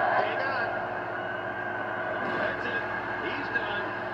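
A heavy body thuds onto a hard floor through a television loudspeaker.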